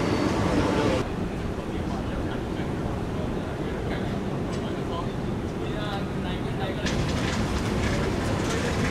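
A jet airliner's engines rumble steadily as it approaches to land.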